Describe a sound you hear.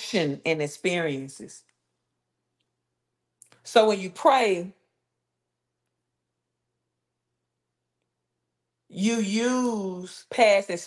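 A woman speaks expressively, close to a microphone, with long pauses.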